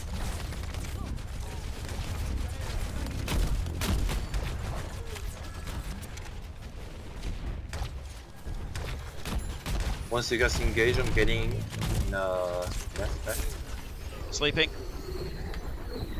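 An energy gun fires rapid zapping shots.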